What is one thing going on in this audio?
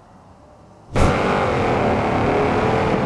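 A car engine roars as a car drives along a road.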